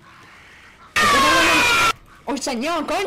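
A young girl screams loudly.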